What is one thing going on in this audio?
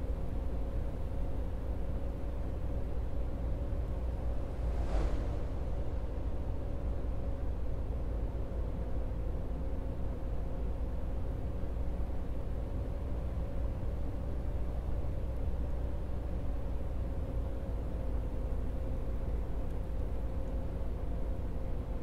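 A bus engine hums steadily as it drives along.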